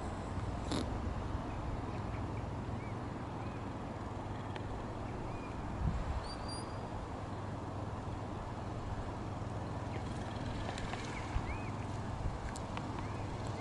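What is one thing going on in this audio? Wind blows steadily across open ground outdoors.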